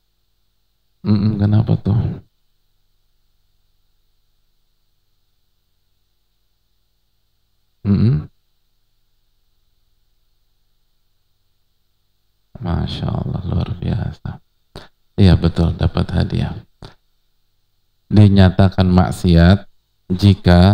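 A man speaks calmly into a microphone, with long pauses between phrases.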